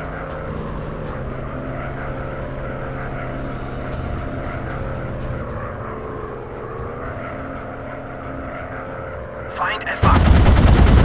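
A propeller engine drones steadily.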